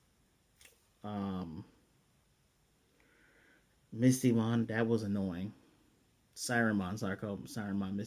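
A man speaks calmly and close to the microphone, pausing between phrases.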